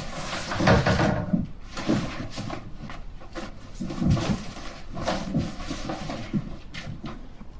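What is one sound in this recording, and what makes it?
Cardboard boxes thump and rustle as they are handled.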